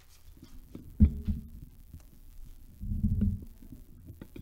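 A microphone thumps and rustles as it is handled.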